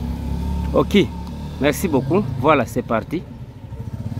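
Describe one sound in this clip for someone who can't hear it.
A motorbike engine hums as it rides past.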